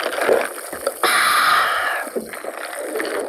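A young woman groans at the taste.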